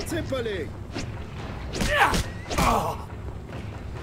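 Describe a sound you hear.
A man grunts and cries out in pain.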